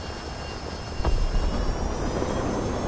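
A low rumbling boom bursts out and rolls on.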